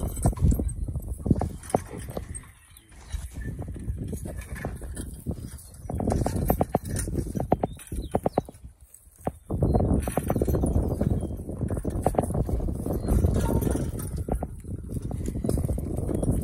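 A horse-drawn plough scrapes and rumbles through the soil.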